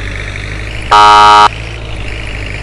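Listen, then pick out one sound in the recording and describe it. A vehicle horn honks once, briefly.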